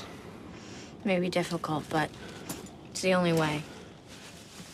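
A young woman speaks in a languid, drawling voice close by.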